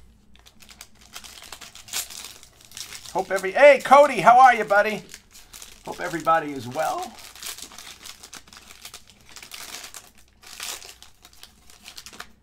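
A foil wrapper crinkles and rustles in someone's hands.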